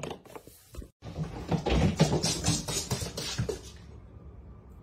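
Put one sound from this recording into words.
A dog's paws scramble on a wooden floor.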